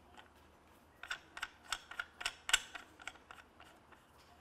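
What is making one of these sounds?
Buttons click on a handheld meter.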